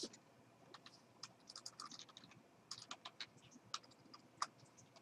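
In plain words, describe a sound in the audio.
Keyboard keys click in quick bursts of typing.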